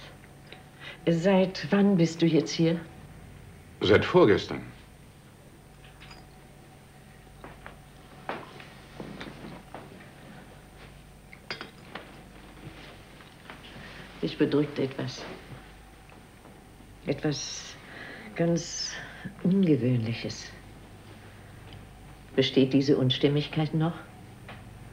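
A middle-aged man speaks calmly and firmly nearby.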